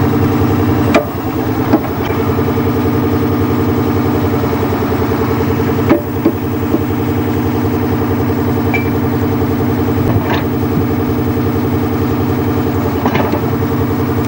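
Metal clanks sharply as a machine grips rails.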